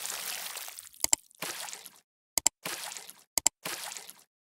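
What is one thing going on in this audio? A computer mouse clicks sharply in quick pairs.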